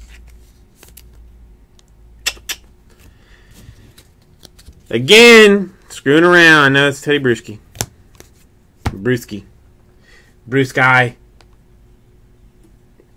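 Trading cards flick and rustle as hands sort through them.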